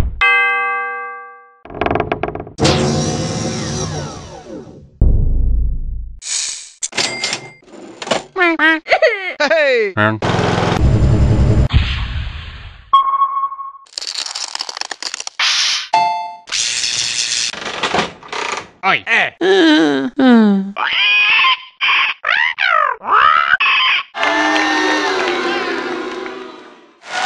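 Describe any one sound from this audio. Cartoonish game sound effects chirp and whoosh in quick succession.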